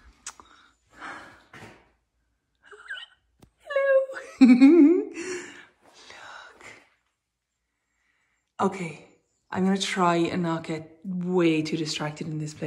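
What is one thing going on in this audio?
A woman talks with animation close by, in short bursts with pauses.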